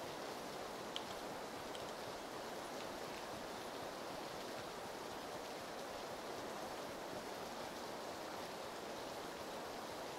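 Steady rain falls outdoors with a soft hiss.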